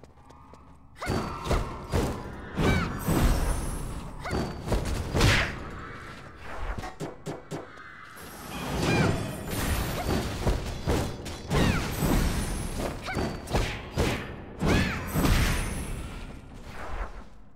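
Magic blasts crackle and burst.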